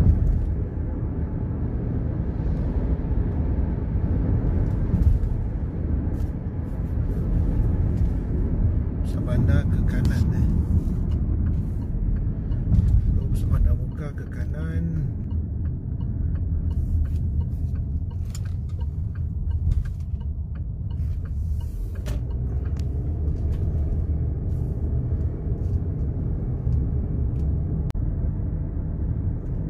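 A car engine hums steadily as it drives along a road.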